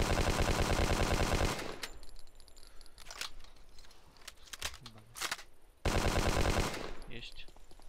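A machine gun fires a rapid burst of shots.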